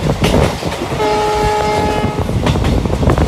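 A train's horn sounds once, steady and long.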